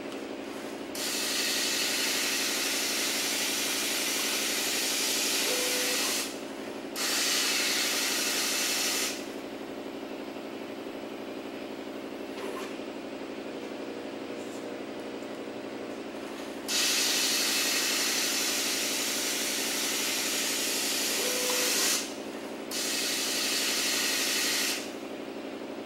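Granules pour from a dispenser into a plastic cup with a loud hiss, in several bursts.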